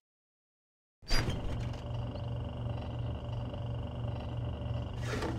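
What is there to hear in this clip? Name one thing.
A refrigerator hums loudly.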